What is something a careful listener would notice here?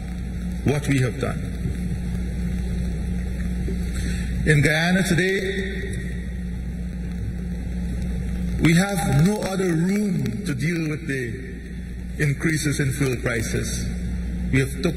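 A man speaks calmly into a microphone over a loudspeaker, with pauses.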